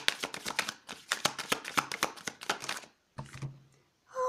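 Cards slap softly onto a table.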